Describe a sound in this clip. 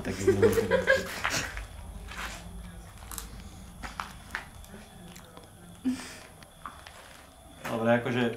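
A young woman cries and pleads close by.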